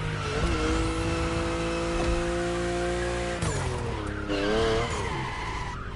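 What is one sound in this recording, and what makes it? Tyres screech as a car drifts through a corner.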